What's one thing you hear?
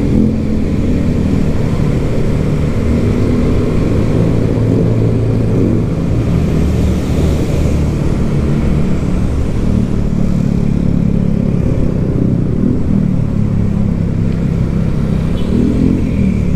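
A motorcycle engine hums steadily close by as it rides along a road.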